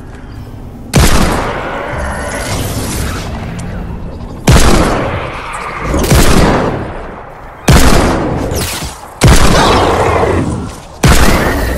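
Heavy blasts fire from a weapon in loud bursts.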